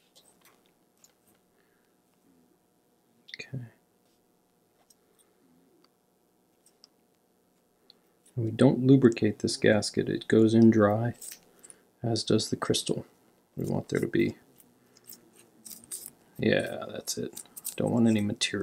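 Small metal watch parts click softly against each other.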